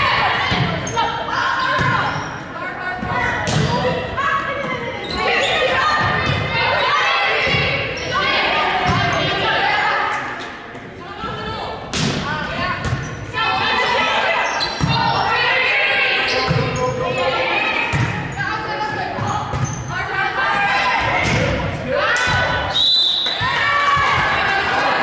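Young women call out and shout to each other in a large echoing gym.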